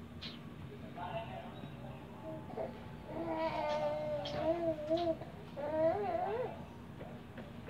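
A baby babbles and coos up close.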